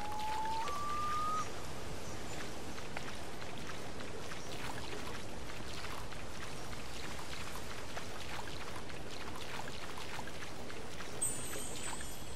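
Water splashes steadily.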